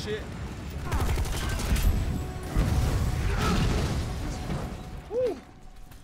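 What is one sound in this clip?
Gunfire and a fiery blast roar loudly.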